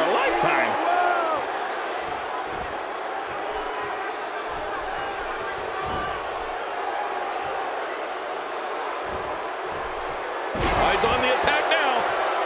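A large crowd cheers and murmurs steadily throughout.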